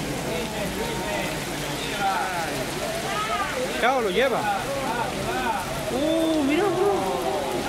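Floodwater rushes across a street.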